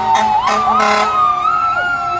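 A fire truck blares its air horn in short blasts.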